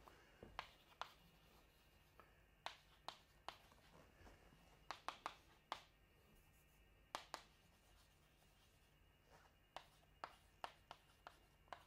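Chalk taps and scratches sharply on a blackboard.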